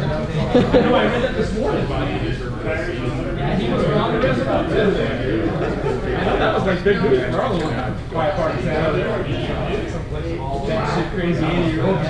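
A young man talks close by, casually.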